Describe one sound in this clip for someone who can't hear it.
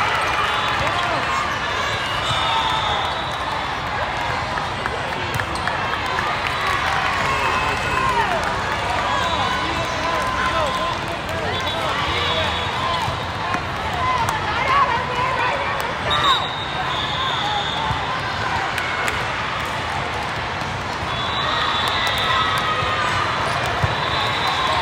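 Many voices chatter and shout across a large echoing hall.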